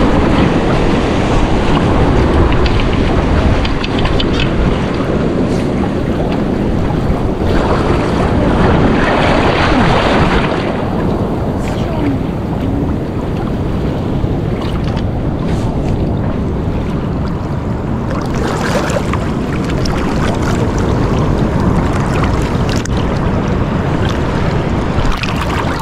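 Wind rumbles outdoors across a microphone.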